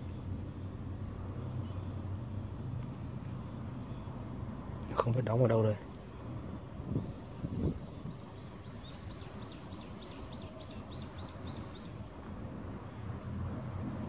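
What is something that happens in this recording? Light wind rumbles softly across open water.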